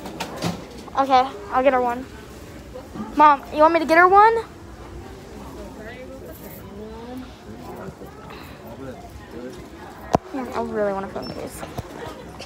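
A young woman speaks close by, in high, excited bursts.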